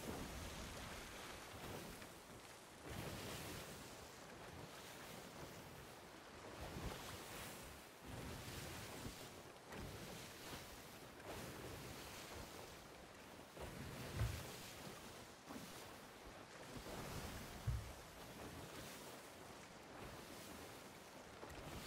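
Wind roars over open sea.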